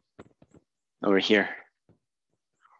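A young man speaks briefly and clearly.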